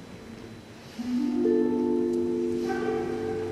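A flute plays sustained notes in a large echoing hall.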